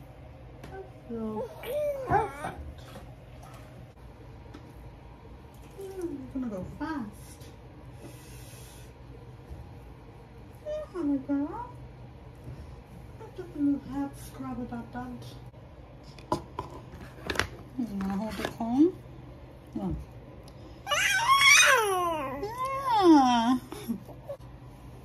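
A woman speaks softly in a high, cooing voice close by.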